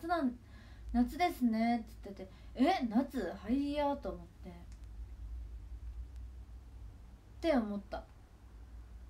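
A young woman speaks softly and casually, close to a microphone.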